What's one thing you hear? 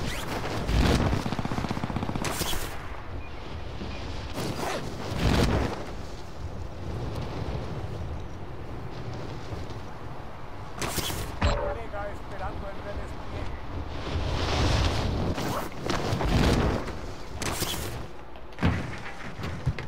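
Wind rushes loudly during a parachute descent.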